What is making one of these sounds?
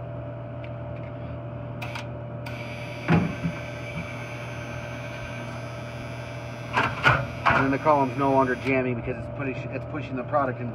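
A vending machine hums steadily.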